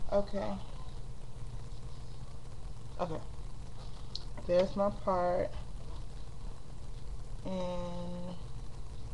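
A woman speaks in short bursts very close to the microphone.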